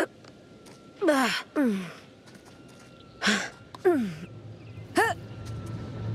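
A young woman grunts and calls out with effort.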